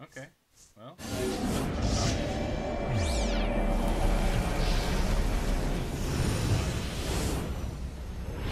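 Loud game effects whoosh and roar.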